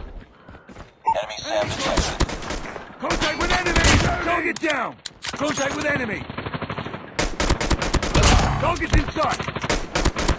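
Pistol shots fire in quick bursts.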